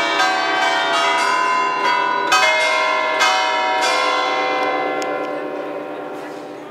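Church bells ring loudly from a tower, their tones ringing on and slowly fading.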